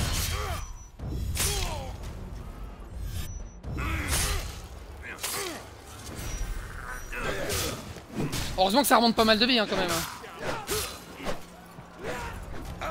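Swords and shields clash in a fast sequence of metallic blows.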